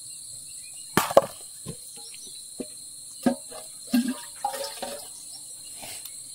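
A metal pot clanks against stone.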